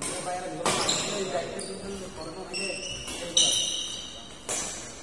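Sports shoes squeak sharply on the court floor.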